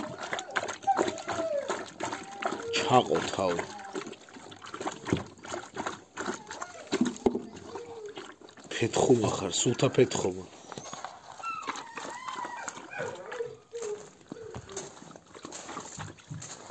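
A dog laps water noisily from a bowl.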